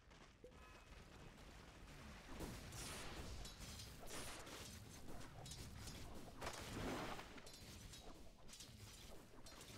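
Weapons clash and spells crackle in a fight.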